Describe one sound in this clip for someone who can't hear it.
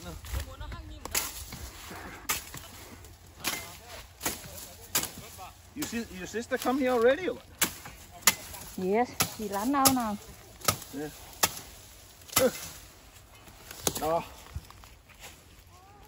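A machete chops through plant stems with sharp knocks.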